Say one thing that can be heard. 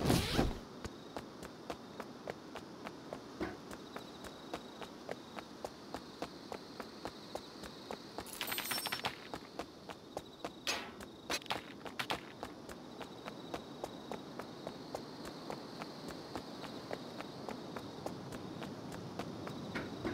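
Footsteps thud steadily on hard ground at a running pace.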